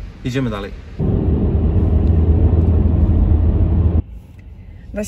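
A car engine and tyres rumble steadily on a road.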